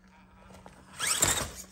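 A toy truck tips over and clatters against rocks.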